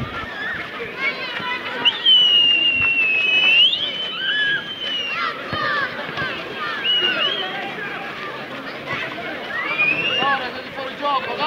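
Players and spectators shout and call out across an open outdoor field.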